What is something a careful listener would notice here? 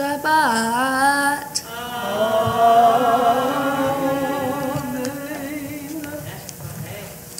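A young woman reads aloud into a microphone.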